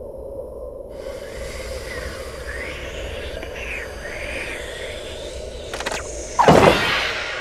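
Light game music plays.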